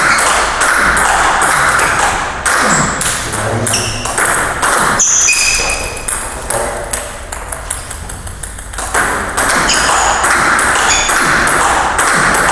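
A table tennis ball clicks back and forth off paddles and a table in a quick rally.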